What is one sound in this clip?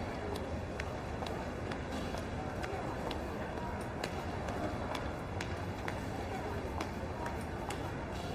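Heeled shoes click steadily on a hard floor in a large echoing hall.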